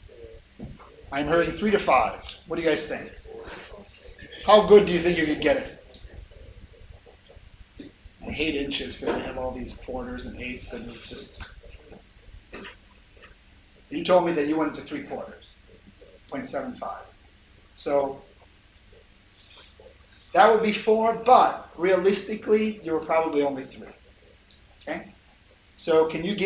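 A man lectures through a microphone, speaking in bursts with pauses.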